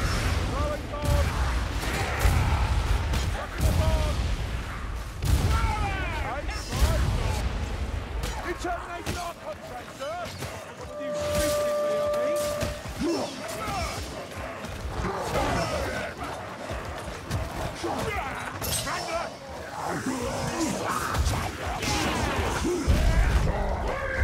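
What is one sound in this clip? Beastly creatures snarl and roar close by.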